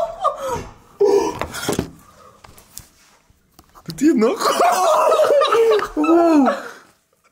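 A young man talks excitedly close to the microphone.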